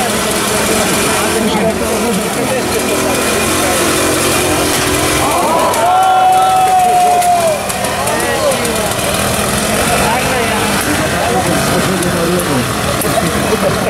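A small tractor engine chugs and putters nearby.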